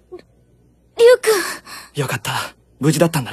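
A young woman speaks softly and tenderly close by.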